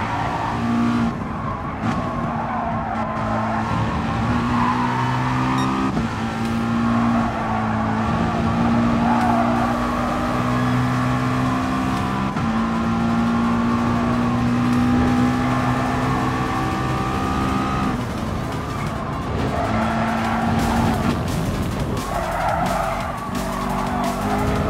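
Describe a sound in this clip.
A race car engine roars, revving up through the gears and dropping as it brakes into corners.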